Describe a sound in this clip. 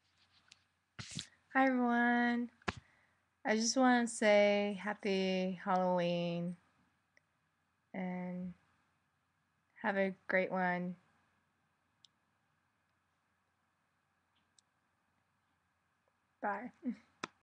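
A young woman speaks cheerfully and close by, in short bursts with pauses.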